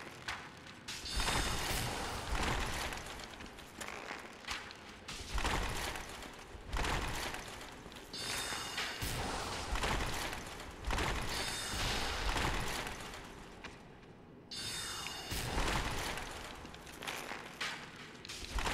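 Loud magical blasts whoosh and crackle in bursts.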